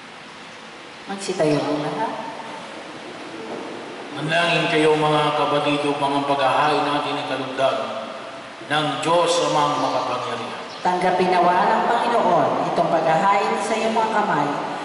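A man speaks steadily through a microphone, echoing in a large hall.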